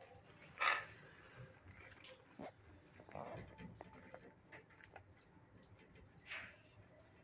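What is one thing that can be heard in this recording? A dog snorts softly nearby.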